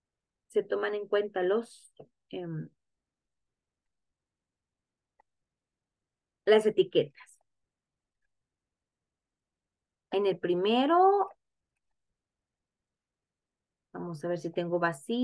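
A woman speaks calmly into a microphone, explaining in short phrases.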